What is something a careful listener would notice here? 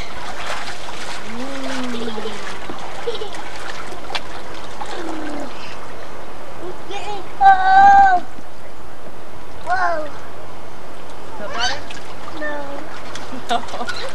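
A young woman talks softly to the children.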